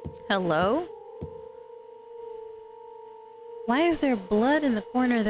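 A young woman exclaims loudly into a close microphone.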